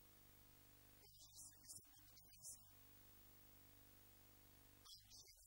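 A man speaks into a microphone over a loudspeaker in a large room, preaching with animation.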